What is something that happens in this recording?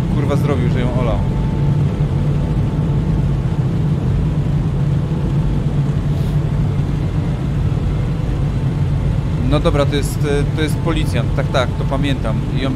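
Heavy rain drums steadily on a car windscreen.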